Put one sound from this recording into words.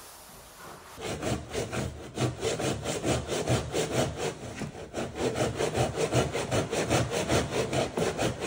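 A hand saw rasps quickly back and forth through wood.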